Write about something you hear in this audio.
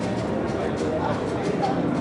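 A crowd murmurs in the background of a busy hall.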